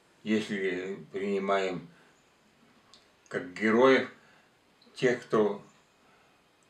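An elderly man speaks close by, in a calm, deliberate voice with pauses.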